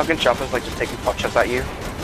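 Machine guns fire rapid bursts.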